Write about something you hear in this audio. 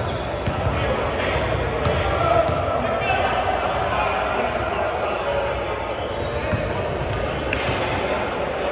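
A basketball bounces on a wooden gym floor.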